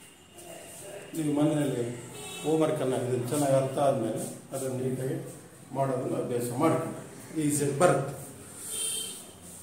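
A middle-aged man speaks clearly and steadily, close by.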